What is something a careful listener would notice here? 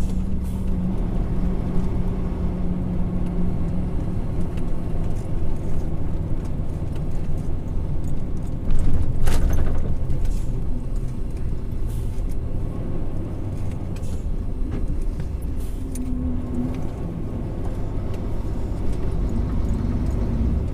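A vehicle engine hums steadily while driving along a road.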